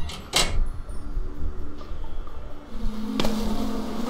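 A metal grate rattles as it is pushed open.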